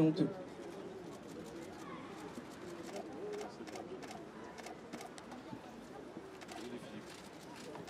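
A crowd murmurs nearby outdoors.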